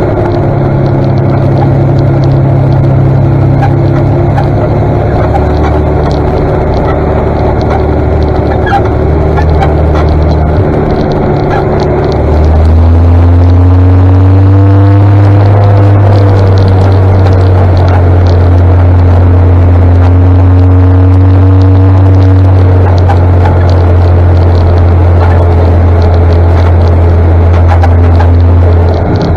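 A tractor engine rumbles steadily close ahead, growing louder partway through.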